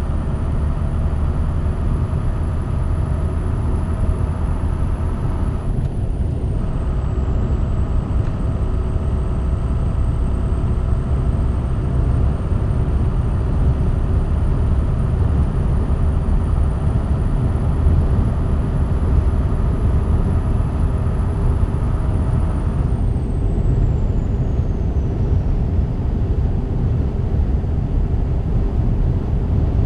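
Tyres hum on a highway.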